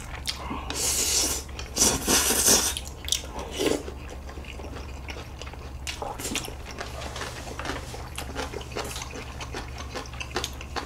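Young men chew food with wet smacking sounds close to the microphone.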